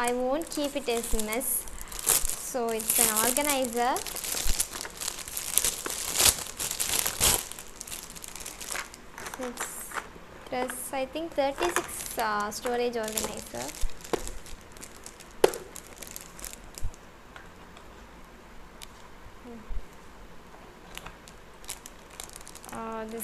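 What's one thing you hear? A young woman talks calmly into a clip-on microphone.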